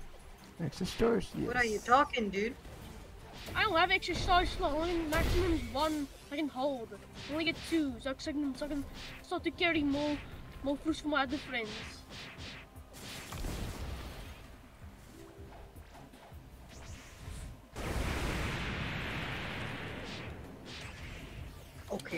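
Punches and energy blasts thump and whoosh in a fight.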